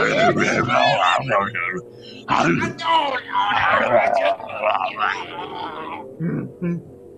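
A man shouts loudly and excitedly over an online call.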